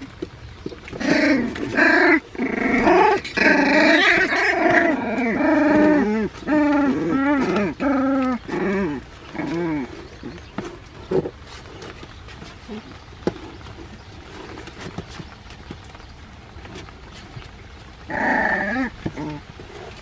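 Puppies yelp and whine as they play.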